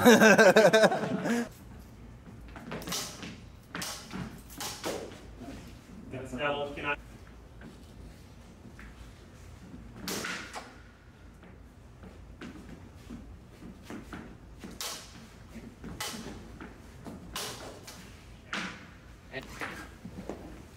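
Footsteps shuffle and squeak on a hard floor.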